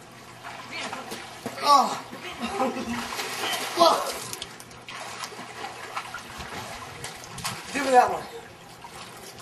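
Water splashes as a boy swims in a pool.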